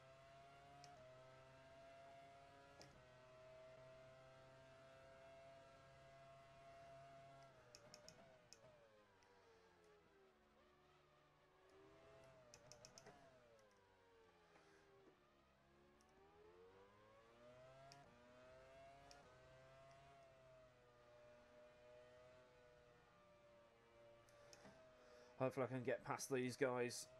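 A racing car engine whines loudly, rising and falling in pitch as the car brakes and speeds up through the gears.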